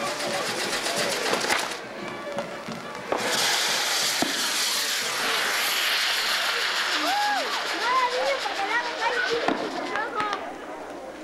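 A firework fountain hisses loudly as it sprays sparks.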